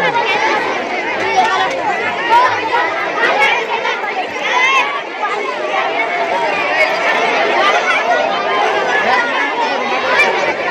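A crowd of people talks and chatters.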